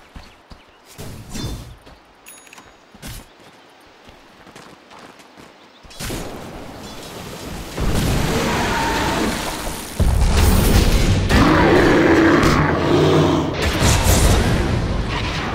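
Weapons clash and strike during a battle.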